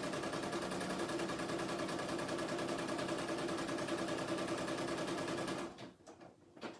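An embroidery machine hums and stitches rapidly with a steady rattle.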